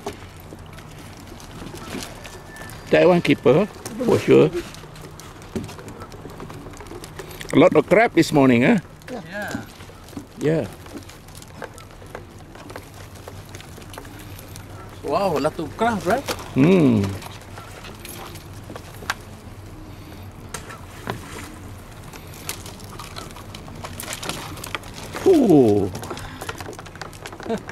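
Crabs and a wire trap knock and scrape on a wooden deck.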